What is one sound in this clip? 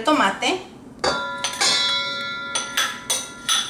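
A metal mixing bowl rings after being struck.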